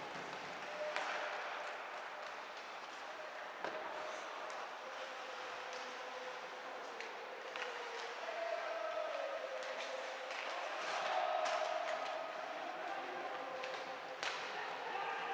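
Hockey sticks click against the puck.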